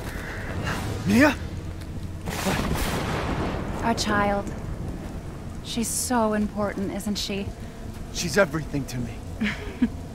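A young man talks calmly into a nearby microphone.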